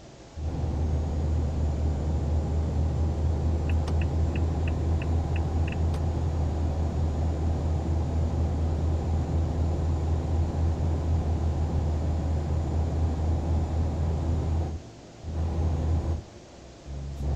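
A truck engine hums low and steady.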